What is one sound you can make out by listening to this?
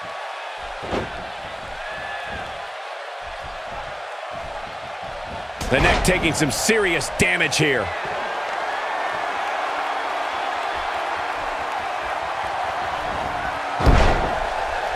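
A wrestler's body thuds onto the ring mat.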